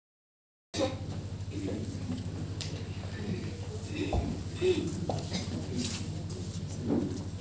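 A choir of young women sings together in a hall with some echo.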